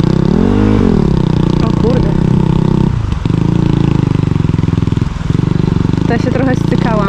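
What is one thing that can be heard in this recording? A motorbike engine revs loudly and unevenly close by.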